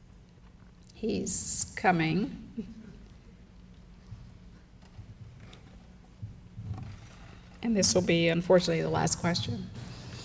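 A woman speaks through a microphone in a large echoing hall, with long pauses.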